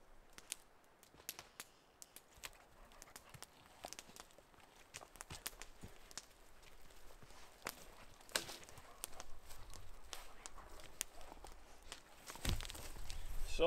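Footsteps crunch on dry forest ground.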